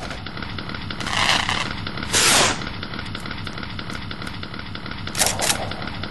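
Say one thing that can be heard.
A chainsaw roars in short bursts.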